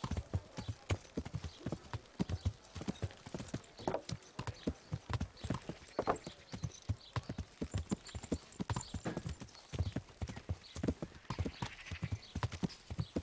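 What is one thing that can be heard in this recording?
A horse's hooves thud quickly on a dirt road at a gallop.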